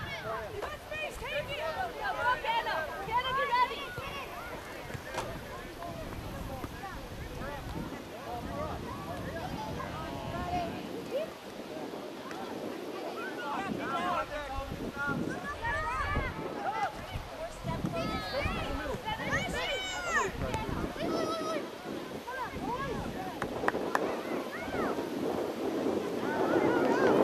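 Players call out to one another across an open field.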